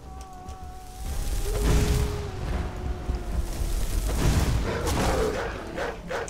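A flame spell roars and crackles.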